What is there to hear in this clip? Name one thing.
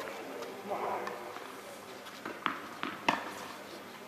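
A tennis ball bounces on the court.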